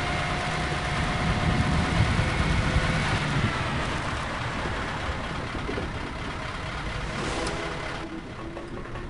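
A heavy vehicle's engine rumbles steadily.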